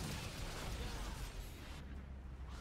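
A loud magical blast crackles and roars.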